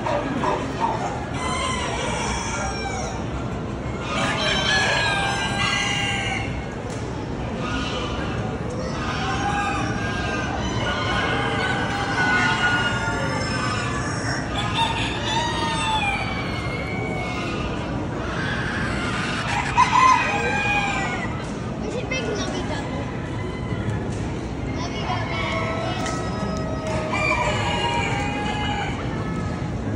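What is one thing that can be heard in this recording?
Roosters crow loudly nearby.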